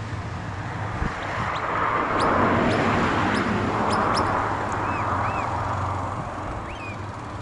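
Wind gusts across an open field.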